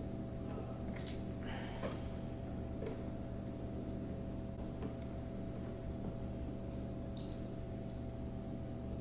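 A plastic strap clicks softly against a wooden board.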